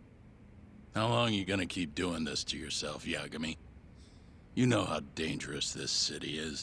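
An older man speaks in a low, gruff voice.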